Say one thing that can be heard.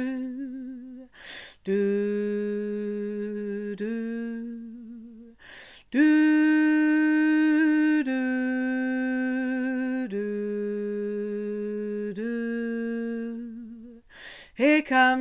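A middle-aged woman sings long, steady held notes close by, her pitch stepping up and down.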